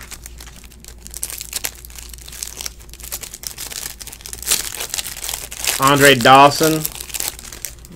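A plastic wrapper crinkles and rustles as it is torn open.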